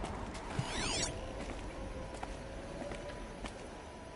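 A bowstring creaks as it is drawn back.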